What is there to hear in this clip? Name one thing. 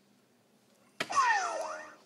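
A dart thuds into a board.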